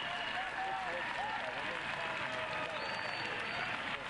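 Fans in the stands clap their hands.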